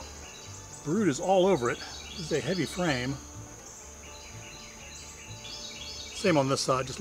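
Bees buzz steadily around a hive.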